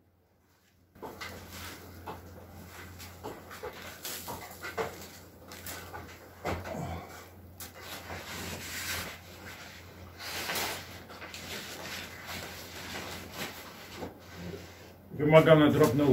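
Insulation sheeting rustles and crinkles as it is handled.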